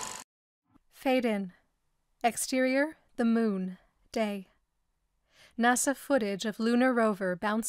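A young woman speaks clearly into a microphone, close and dry.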